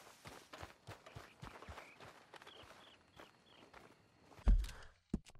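Footsteps run quickly through grass and brush.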